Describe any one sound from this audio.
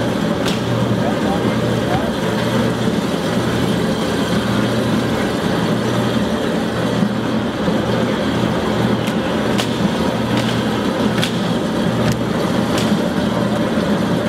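Grapes tumble and rustle as they are poured into a machine.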